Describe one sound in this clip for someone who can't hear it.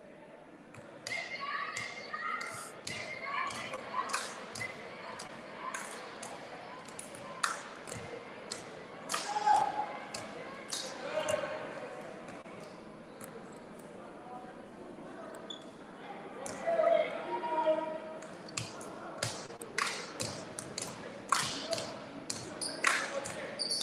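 Sneakers squeak sharply on a hardwood floor in a large echoing gym.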